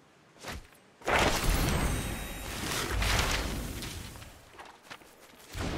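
A magical whooshing burst rings out and slowly fades.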